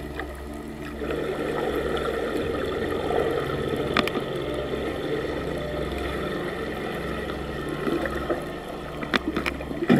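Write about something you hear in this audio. Swimmers splash and kick at the surface above.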